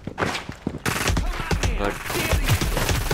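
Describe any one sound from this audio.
Gunshots fire in quick bursts, loud and close.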